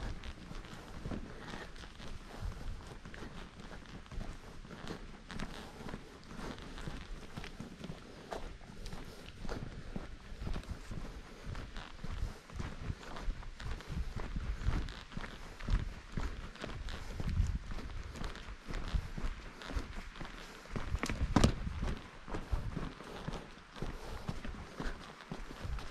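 Footsteps crunch on a dirt trail at a steady walking pace.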